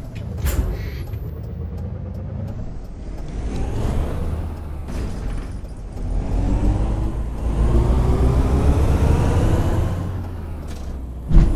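A bus engine hums and revs as the bus pulls away and speeds up.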